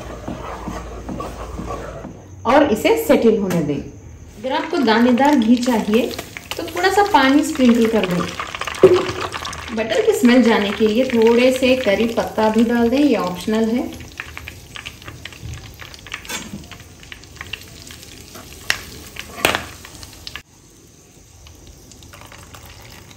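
Hot butter sizzles and bubbles in a pan.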